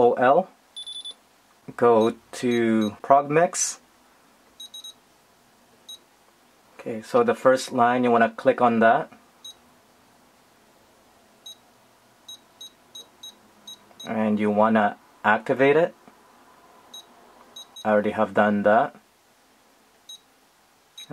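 An electronic device gives short high beeps as its buttons are pressed.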